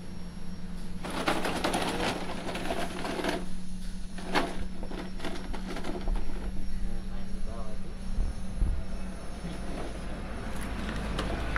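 A toy car's plastic wheels rattle over gravel.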